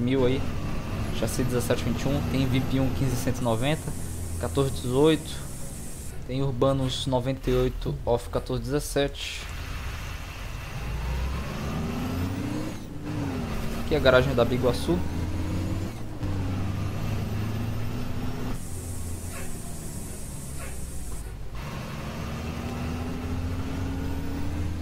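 A bus engine hums steadily and rises in pitch as it speeds up.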